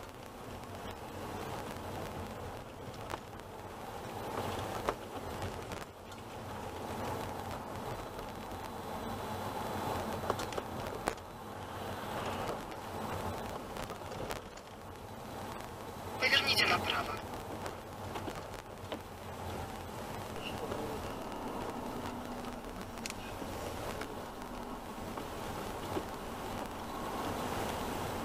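Tyres roll over wet road.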